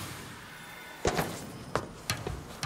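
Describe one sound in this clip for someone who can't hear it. Footsteps clank on a metal ladder.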